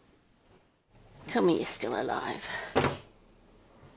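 Fabric rustles as a cloth cover is moved over a cage.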